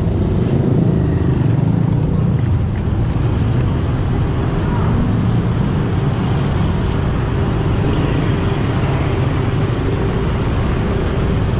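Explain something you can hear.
A small motorcycle engine hums as it rides along a street.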